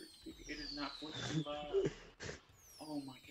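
Fireworks pop and crackle overhead.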